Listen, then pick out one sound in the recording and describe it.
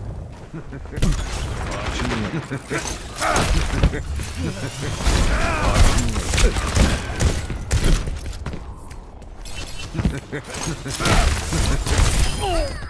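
Guns fire in rapid bursts with loud impacts.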